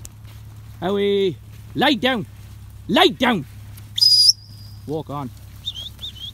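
Sheep bleat loudly, one after another.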